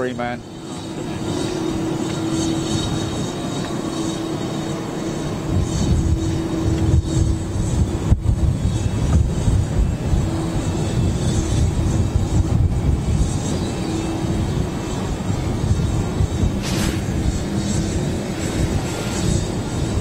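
A large jet's engines roar steadily at a distance as it taxis.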